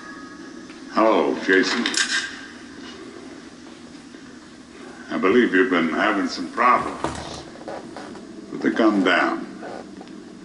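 A man speaks tensely in short bursts.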